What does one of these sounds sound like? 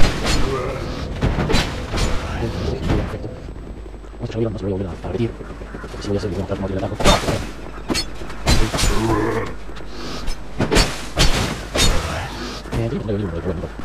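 Armoured footsteps thud quickly on stone.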